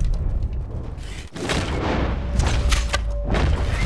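An arrow is loosed from a bow with a sharp twang.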